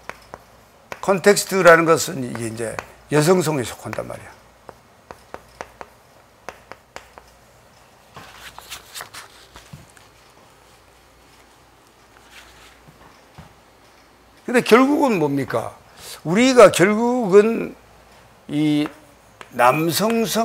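A middle-aged man speaks calmly and clearly through a microphone.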